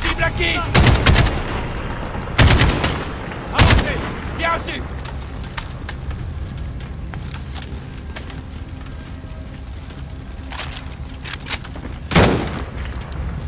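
A rifle fires loud bursts of shots close by.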